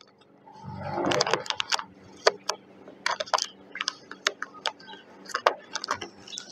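Plastic film crinkles and crackles as it is peeled off.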